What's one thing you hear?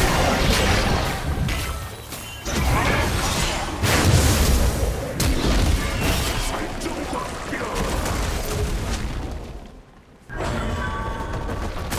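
Magic blasts and weapon hits crash in a fast, busy fight.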